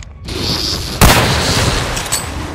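A rifle fires a single loud shot that echoes briefly.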